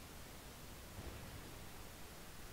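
Naval guns boom in the distance.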